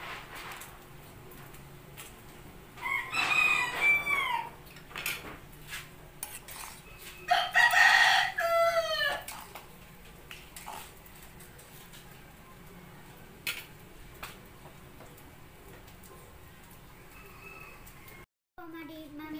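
Soup bubbles and simmers in a pot.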